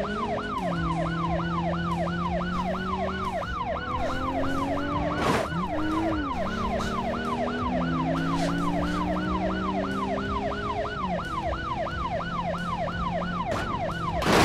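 A police siren wails rapidly and steadily.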